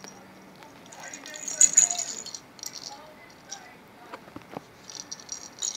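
A plastic ball rattles as a kitten bats it.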